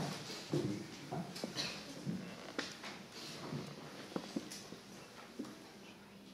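A classical guitar is plucked softly.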